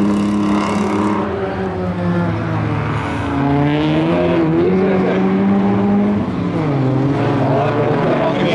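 Several race car engines roar and rev loudly.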